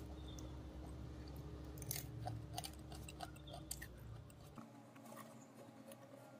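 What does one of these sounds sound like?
Crisp chips rustle and crackle as fingers pick them up.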